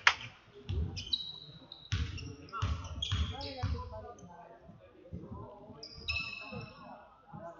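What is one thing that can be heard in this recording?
Sneakers squeak on a gym floor.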